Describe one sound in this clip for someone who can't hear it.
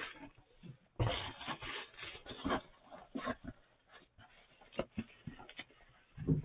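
A cardboard box flap scrapes and thumps as it is folded shut.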